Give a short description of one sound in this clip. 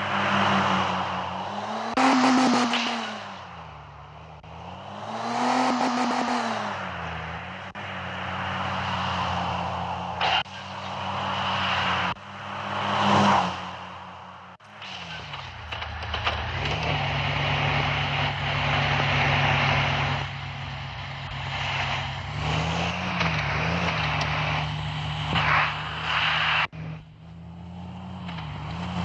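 A car engine revs up and down steadily.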